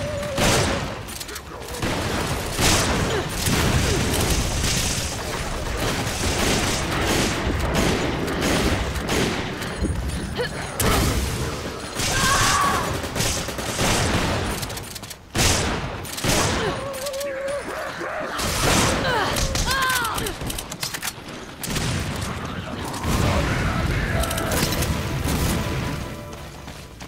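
Gunfire rattles and bangs in quick bursts.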